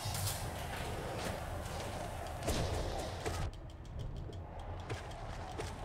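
Sharp sword slashes and impacts ring out in a video game.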